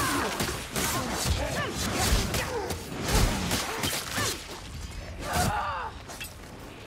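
Creatures snarl and shriek as they are cut down.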